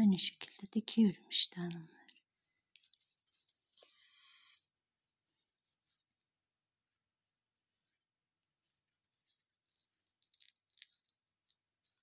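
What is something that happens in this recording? Yarn rustles softly as it is pulled through crocheted fabric.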